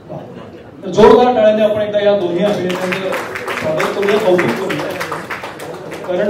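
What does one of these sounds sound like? A second man answers calmly through a microphone over loudspeakers.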